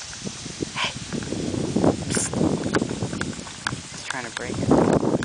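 Wood chips rustle and crunch as a baby grabs at them.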